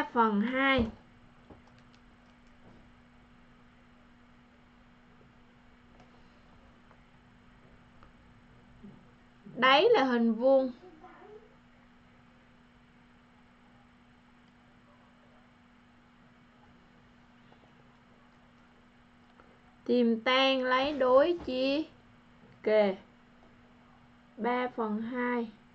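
A woman speaks calmly into a close microphone in short bursts with long pauses.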